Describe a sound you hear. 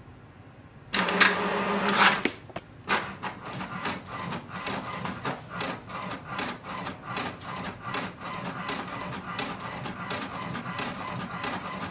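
A printer whirs and clicks rapidly as it prints a page.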